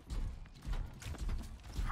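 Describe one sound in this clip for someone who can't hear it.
Heavy robotic footsteps thud and clank.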